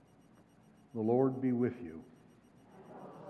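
An elderly man speaks into a microphone in a large echoing hall.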